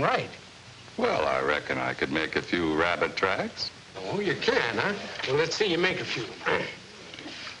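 A young man talks with animation.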